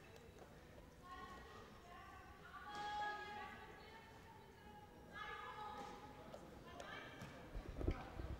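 Young women shout to each other in a large echoing hall.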